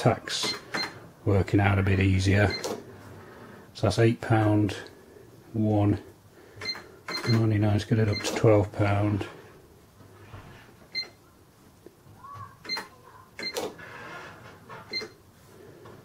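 Buttons on a register are pressed, each with a short electronic beep.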